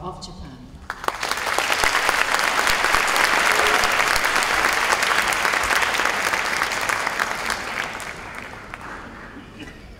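An audience applauds loudly in a large hall, then fades.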